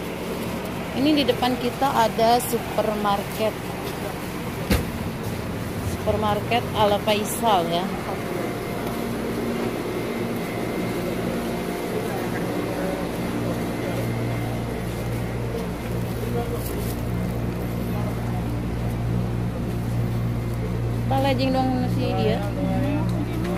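A woman talks close by, briefly and calmly.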